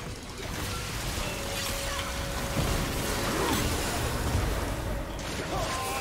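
Video game spell effects whoosh and crackle in a fight.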